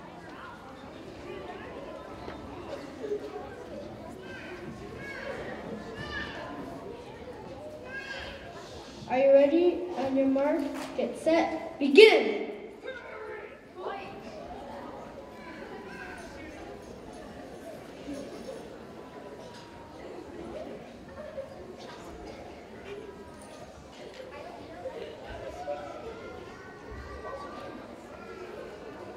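A large group of young children sings and chatters in an echoing hall.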